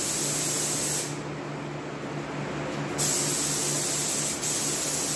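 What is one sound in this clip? A spray gun hisses loudly in short bursts.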